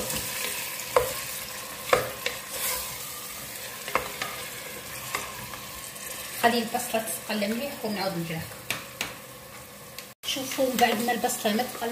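A wooden spoon knocks and scrapes against a metal pot.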